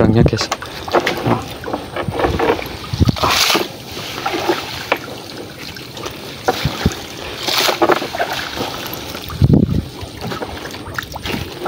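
A fishing net rustles and scrapes as hands handle it.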